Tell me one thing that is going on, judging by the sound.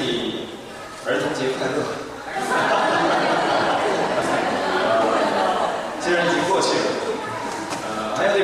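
A man speaks steadily into a microphone, heard through loudspeakers in a large echoing hall.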